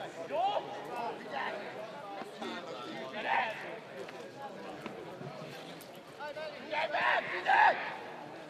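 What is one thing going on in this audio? Men shout to each other outdoors, far across an open field.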